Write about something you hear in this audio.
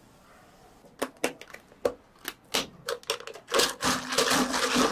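Plastic lids snap onto cups.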